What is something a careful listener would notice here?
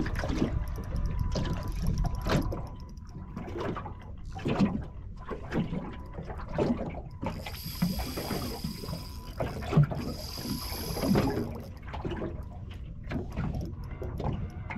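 Wind blows steadily across open water.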